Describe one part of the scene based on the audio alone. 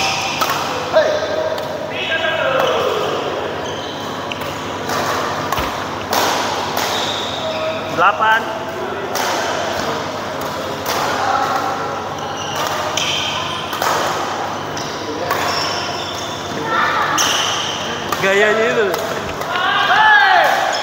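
Rackets strike a shuttlecock again and again in a large echoing hall.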